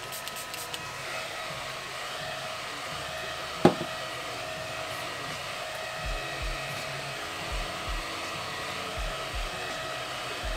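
A small handheld fan whirs steadily.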